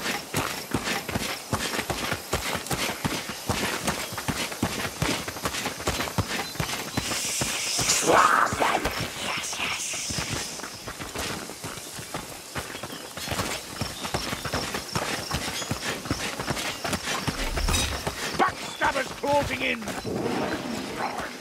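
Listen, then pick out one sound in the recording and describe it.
Quick footsteps rustle through tall dry grass.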